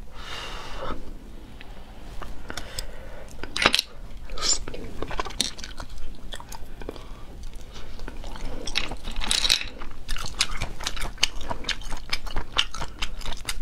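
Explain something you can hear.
A young woman chews and slurps close to a microphone.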